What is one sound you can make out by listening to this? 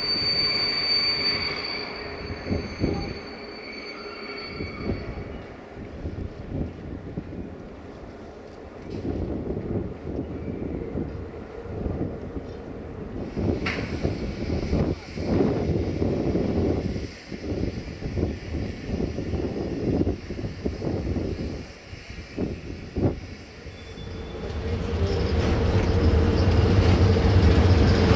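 A locomotive engine idles with a low, steady hum.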